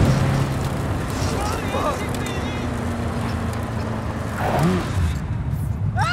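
Tyres crunch over rough ground.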